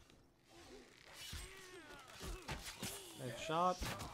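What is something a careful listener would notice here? A bow string twangs as an arrow is loosed.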